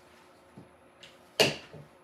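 A plastic glue gun clacks as it is picked up and handled.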